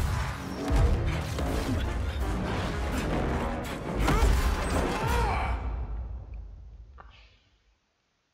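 Deep explosions rumble and boom, then fade away.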